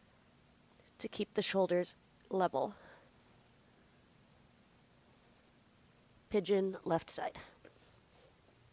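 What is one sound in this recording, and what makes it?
A woman speaks calmly and clearly, close to a microphone, in short phrases.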